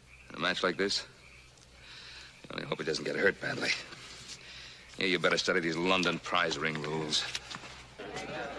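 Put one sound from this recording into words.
An older man speaks calmly and gravely.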